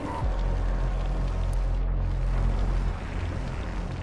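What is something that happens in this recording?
Flames roar and crackle nearby.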